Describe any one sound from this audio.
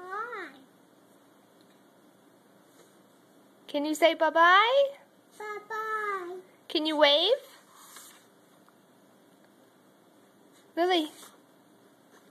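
A small child talks in a high, sing-song voice close by.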